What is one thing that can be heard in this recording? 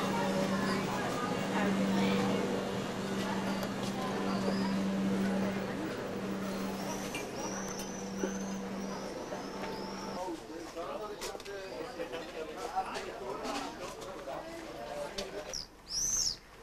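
Footsteps tap on a stone street.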